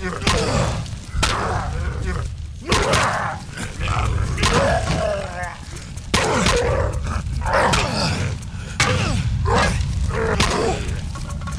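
Heavy blows thud and smack into flesh again and again.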